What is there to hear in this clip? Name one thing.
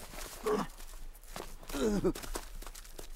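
A man groans in pain.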